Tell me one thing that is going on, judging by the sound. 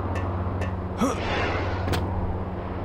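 A lightsaber swings with a whoosh.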